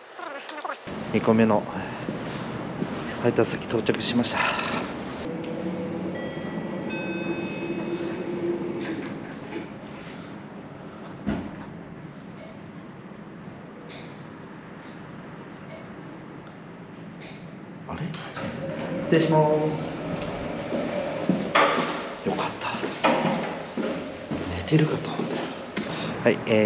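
A man talks casually close to the microphone, his voice slightly muffled.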